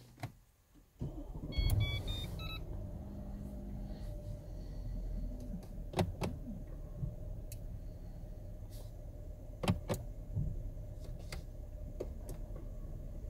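A car engine starts and then idles with a steady low hum.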